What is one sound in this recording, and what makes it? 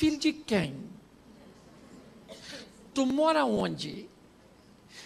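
A middle-aged man speaks expressively into a microphone, with pauses.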